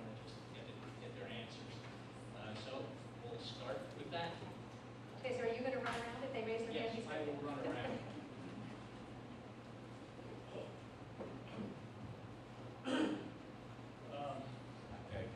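A woman speaks to a crowd through a microphone in a large echoing hall.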